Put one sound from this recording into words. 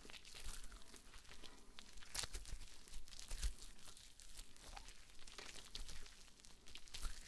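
A rubber glove squeaks and rustles close by as it is stretched.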